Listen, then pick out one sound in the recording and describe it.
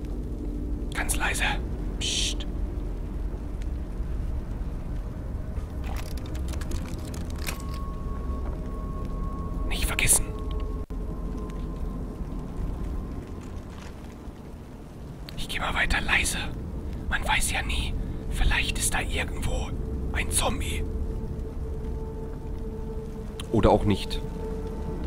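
A young man talks close to a microphone.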